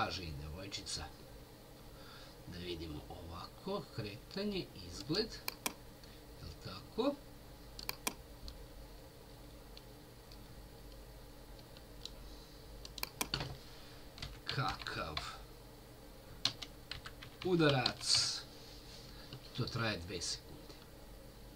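A middle-aged man talks calmly into a computer microphone, close by.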